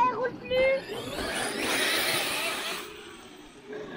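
A small electric motor whines as a toy car races over dirt.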